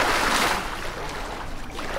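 Water splashes as someone surfaces and climbs out.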